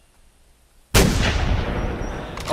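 A rifle fires a single loud shot that echoes through the forest.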